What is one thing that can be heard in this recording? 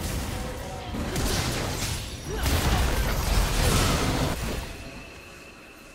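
Fantasy battle effects burst, whoosh and crackle in quick succession.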